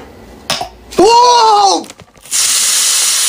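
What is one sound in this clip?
Soda foams up and fizzes loudly.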